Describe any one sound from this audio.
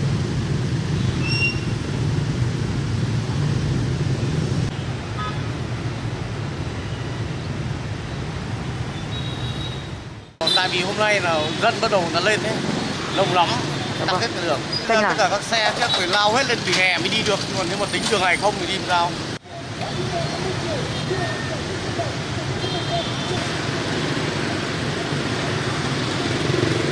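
Motorbike engines rumble steadily in heavy street traffic.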